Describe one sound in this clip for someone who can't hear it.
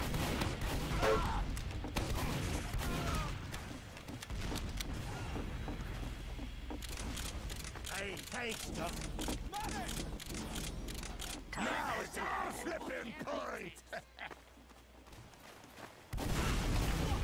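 A heavy machine gun fires in rapid rattling bursts.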